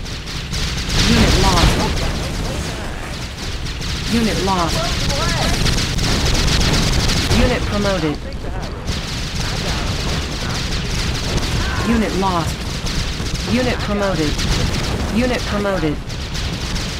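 Explosions boom and crackle in a battle.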